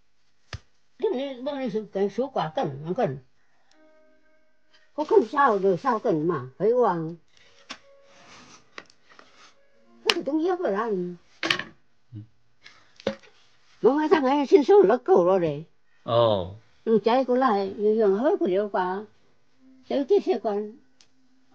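An elderly woman speaks close by, calmly and with pauses.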